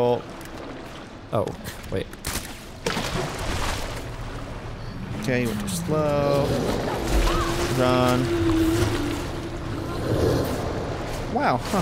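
Water splashes as someone wades through it.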